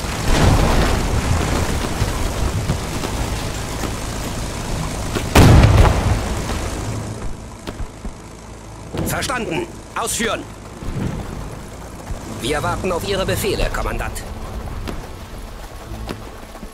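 Fires crackle and burn.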